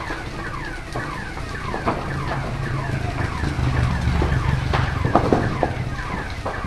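Burning wood crackles and pops sharply.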